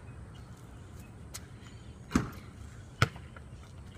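A basketball clangs off a hoop's rim.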